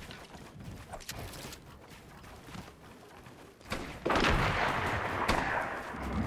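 Wooden walls and ramps snap into place with quick sharp clacks.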